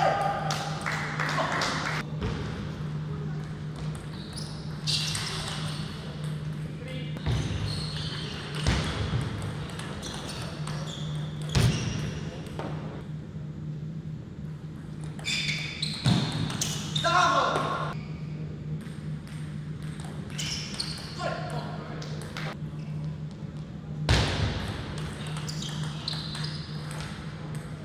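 A table tennis ball clicks back and forth between paddles and the table in a large hall.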